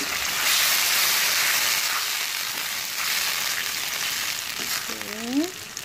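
A spatula scrapes and stirs in a pan.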